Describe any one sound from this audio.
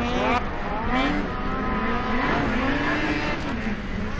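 A snowmobile engine roars as it races past.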